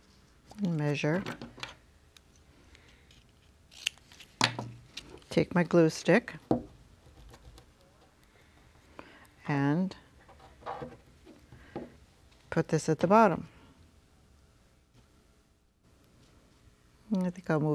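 An older woman talks calmly and clearly, close to a microphone.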